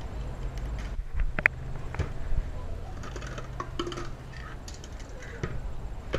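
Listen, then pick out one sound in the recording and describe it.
Cupboard doors open and shut with knocks.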